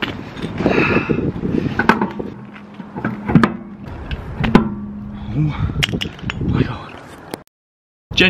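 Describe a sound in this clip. Metal clinks and knocks as a car wheel is fitted onto its hub.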